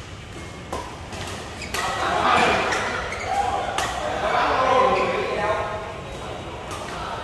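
Badminton rackets smack a shuttlecock with sharp pops in a large echoing hall.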